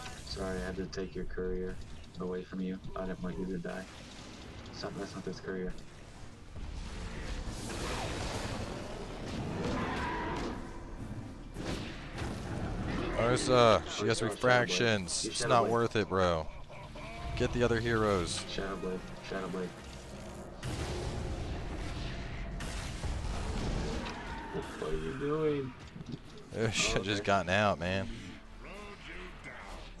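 Game spells whoosh and blast during a fight.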